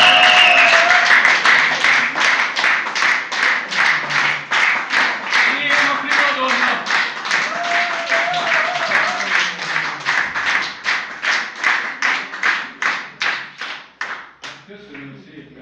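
An audience claps along in a quick, steady rhythm.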